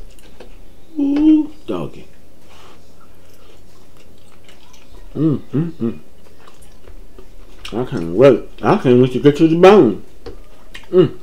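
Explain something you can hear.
A man hums and speaks close to a microphone with relish.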